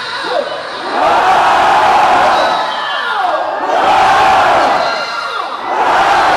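A crowd cheers and screams loudly in a large echoing hall.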